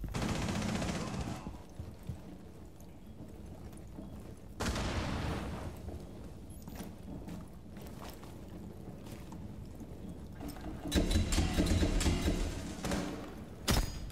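Footsteps thud on a wooden floor and stairs.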